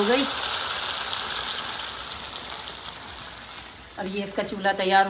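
Food sizzles in a hot pan, slowly growing quieter.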